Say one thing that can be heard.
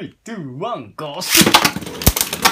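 Spinning tops rip off their launchers with a sharp whir.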